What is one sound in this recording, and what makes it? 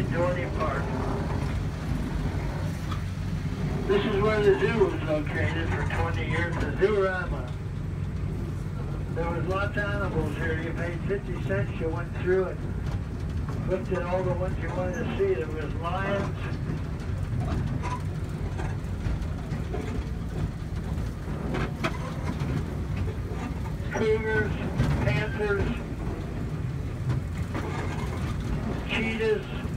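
A small ride vehicle rumbles steadily along.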